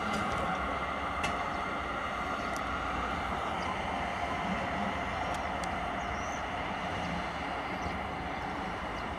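A locomotive rumbles steadily as it rolls past at a distance.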